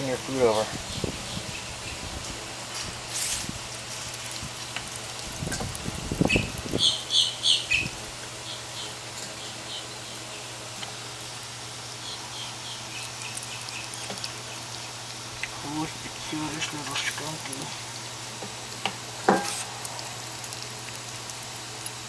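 A small animal crunches and chews food from a metal bowl.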